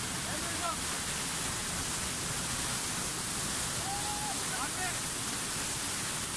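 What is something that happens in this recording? A waterfall roars loudly and steadily close by.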